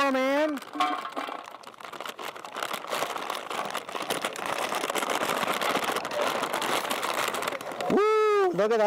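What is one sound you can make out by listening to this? Dry food patters and rattles as it is poured into a metal basket.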